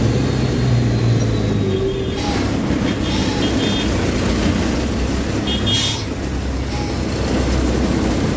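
A heavy vehicle's engine rumbles steadily from inside the cab.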